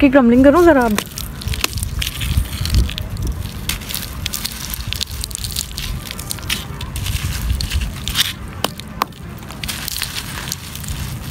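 Dry, crumbly dirt rustles and trickles through a hand close by.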